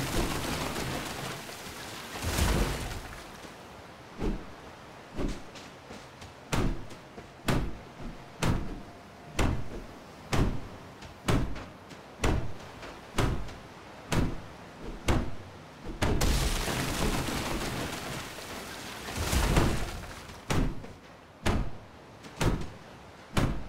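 Waves wash softly onto a beach.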